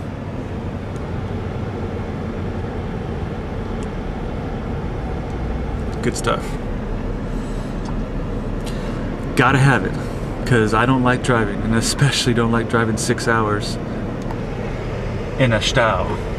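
A car engine rumbles steadily inside the cabin.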